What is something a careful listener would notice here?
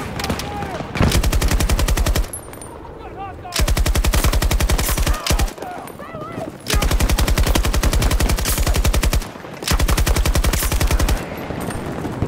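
A machine gun fires long rapid bursts close by.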